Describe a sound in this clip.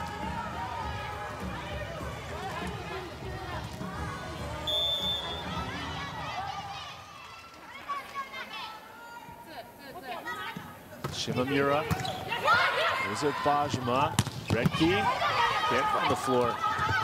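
A large indoor crowd cheers and shouts, echoing through a big hall.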